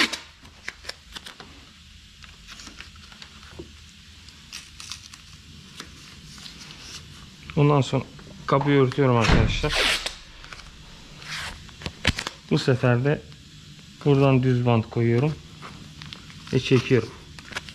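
Paper rustles and crinkles against a car body.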